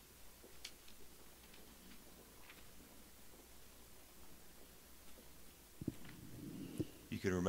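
A man reads out quietly into a microphone.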